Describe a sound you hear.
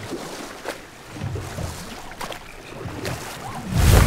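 Oars splash gently in water.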